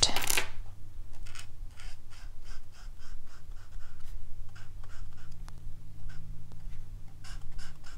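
An alcohol marker scratches in short strokes on cardstock.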